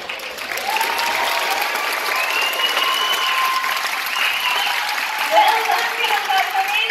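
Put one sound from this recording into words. A crowd cheers and calls out in a large echoing hall.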